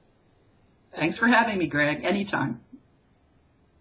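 A middle-aged woman speaks briefly and cheerfully over an online call.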